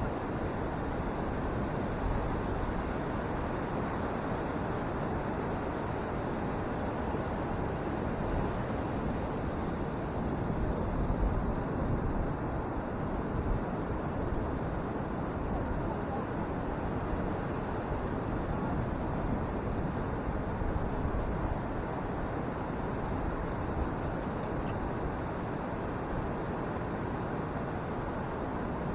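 Ocean waves roar and crash steadily onto the shore.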